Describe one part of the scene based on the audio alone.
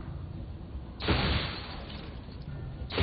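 Glass bottles shatter and tinkle.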